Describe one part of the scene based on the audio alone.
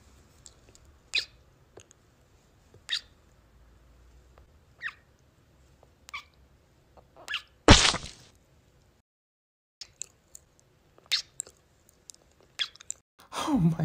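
A young woman's lips smack wetly, very close.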